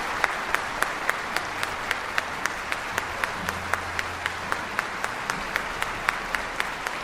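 A crowd claps along in a quick, steady rhythm in a large hall.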